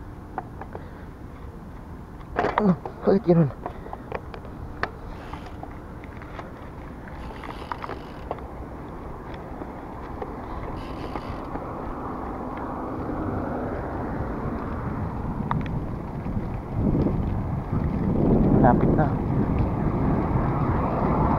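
Wind rushes past a moving bicycle, growing louder over time.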